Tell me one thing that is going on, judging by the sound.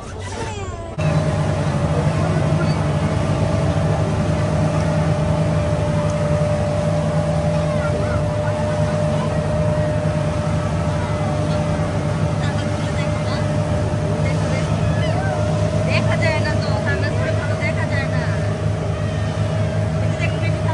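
Water rushes and splashes behind a moving boat.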